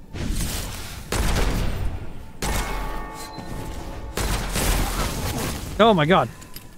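A heavy gun fires loud, booming shots one after another.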